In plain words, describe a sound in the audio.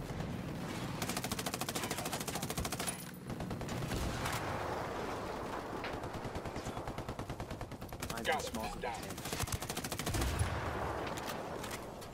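Explosions boom heavily.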